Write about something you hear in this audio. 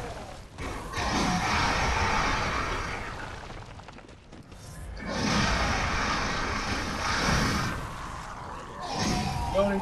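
Loud fighting noises crash and roar.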